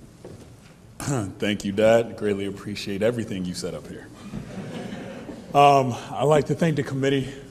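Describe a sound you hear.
A man speaks into a microphone over loudspeakers in a large room.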